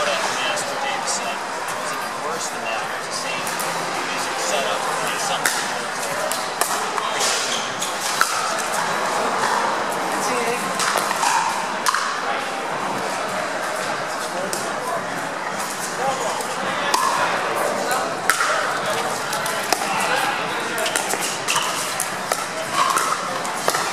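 A crowd of onlookers chatters steadily nearby.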